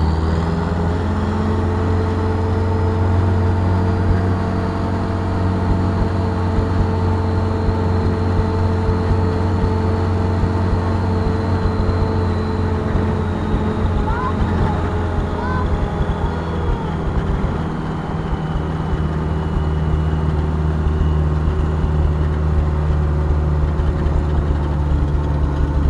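A vehicle's engine hums steadily from inside the cab as it drives along.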